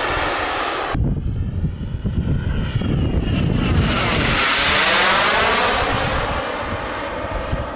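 A jet engine roars overhead as the jet sweeps past, rising and then falling in pitch.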